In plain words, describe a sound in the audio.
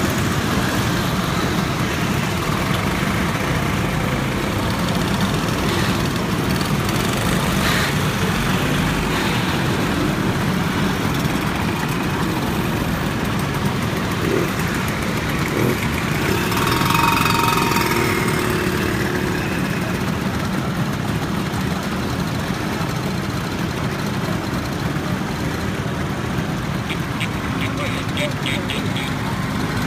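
Many scooter engines idle and buzz outdoors.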